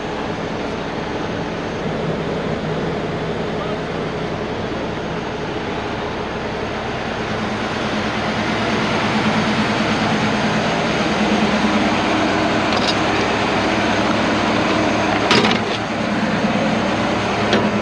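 Heavy diesel engines idle and rumble steadily outdoors.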